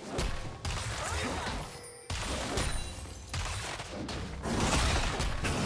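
Magic blasts and impacts crash and crackle in quick bursts.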